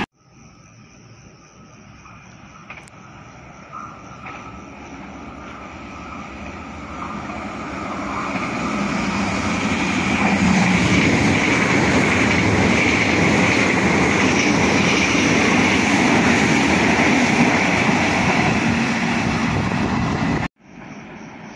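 A train approaches and rushes past with a loud, building roar of wheels on rails.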